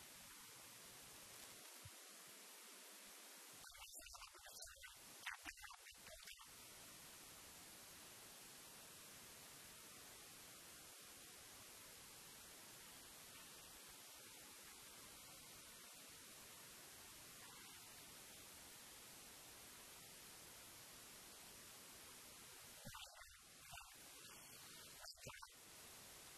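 Distant players call out to each other on an open field.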